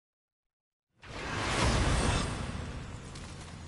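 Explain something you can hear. A burst of flame roars and whooshes.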